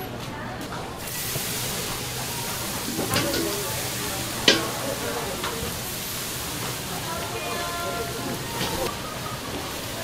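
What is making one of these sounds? Battered food sizzles and crackles in hot oil.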